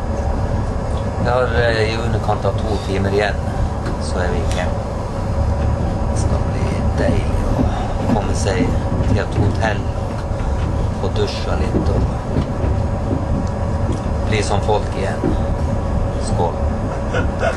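A middle-aged man talks calmly close to a microphone.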